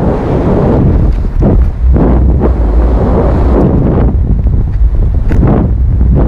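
Strong wind roars and buffets loudly against the microphone.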